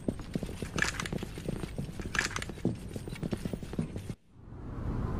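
Heavy footsteps run quickly on a hard floor.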